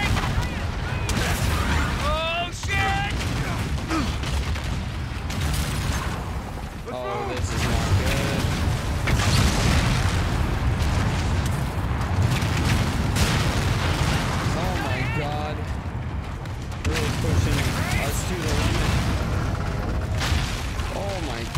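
Explosions rumble and crash.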